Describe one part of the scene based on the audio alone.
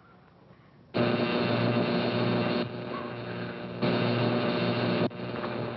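A radio plays loudly.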